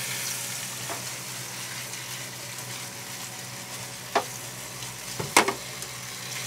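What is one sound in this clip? Chopsticks knock against the side of a pan.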